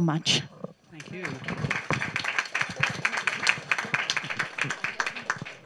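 Several women laugh and chatter nearby.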